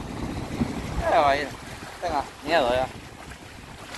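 Small waves wash and lap against the shore.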